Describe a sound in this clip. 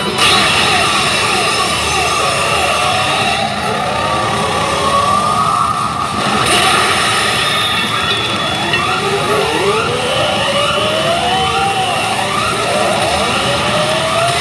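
A pachinko machine plays loud music and electronic effects.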